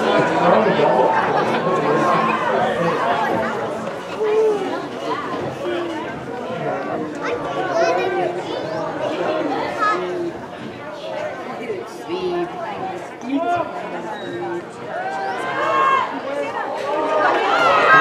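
A crowd murmurs and chatters in an open stadium.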